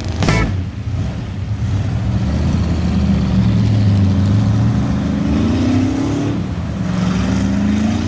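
A truck engine roars loudly, revving up and down.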